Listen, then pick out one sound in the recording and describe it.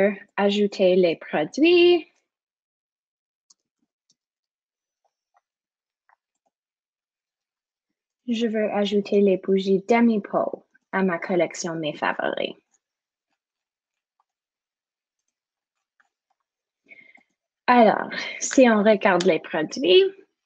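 A young woman talks calmly over a microphone in an online call, pausing between phrases.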